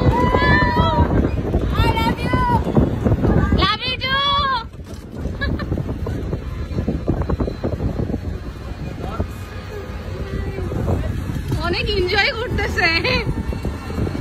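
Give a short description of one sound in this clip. A young woman shouts and cheers excitedly nearby.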